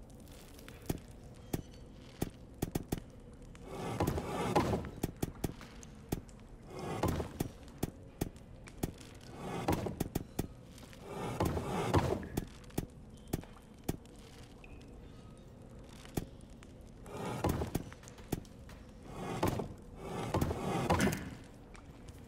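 Stone discs click into place with sharp knocks.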